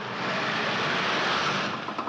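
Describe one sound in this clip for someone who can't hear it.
A lorry rumbles past on wet ground.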